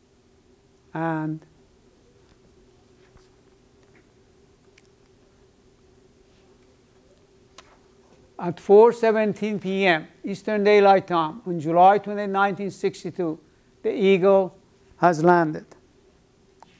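An elderly man speaks calmly, lecturing, with pauses.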